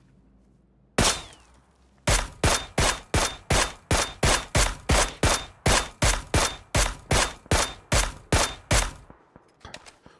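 A rifle fires a single loud shot, then a rapid series of loud shots.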